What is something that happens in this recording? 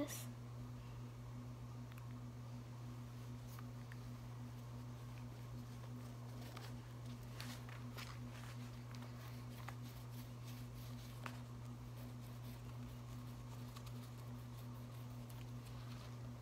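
A paintbrush dabs and scrapes on paper.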